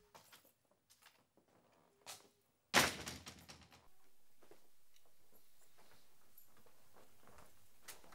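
A man's footsteps tap softly on a hard floor.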